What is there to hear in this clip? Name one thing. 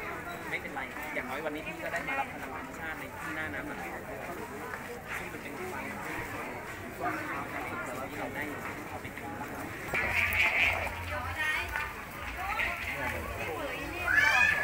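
Men and women chatter in a crowd outdoors.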